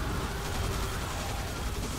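Gunshots fire rapidly in a video game.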